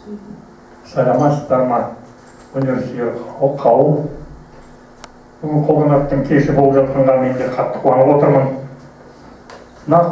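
An older man speaks loudly into a microphone over a loudspeaker.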